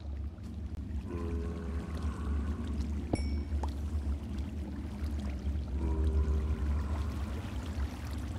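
A zombie groans.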